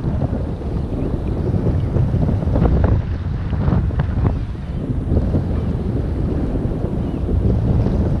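Small waves lap and splash around a wader in the sea.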